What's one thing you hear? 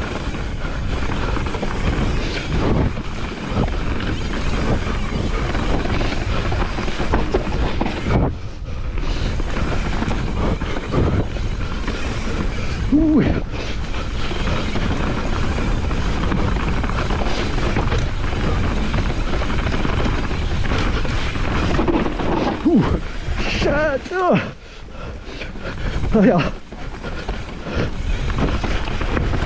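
A mountain bike's chain and frame rattle over bumps.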